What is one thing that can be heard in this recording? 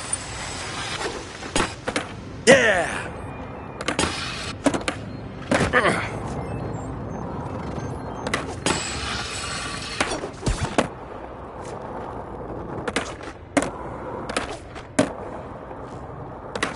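Skateboard wheels roll and grind on concrete and rails.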